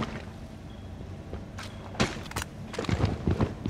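A rifle magazine is pulled out and clicks back into place.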